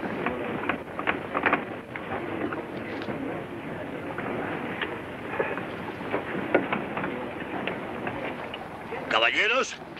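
Several men murmur and chatter.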